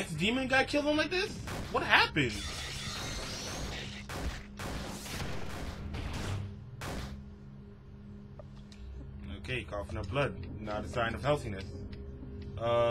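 A young man talks animatedly close to a microphone.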